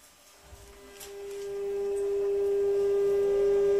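An electric train's motor hums and whines as it starts to pull away.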